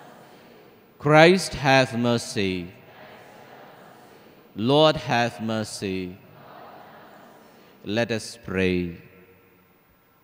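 A man speaks slowly and solemnly into a microphone, with a slight echo.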